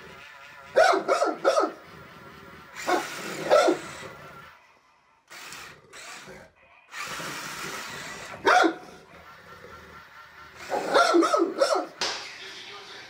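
A dog barks close by.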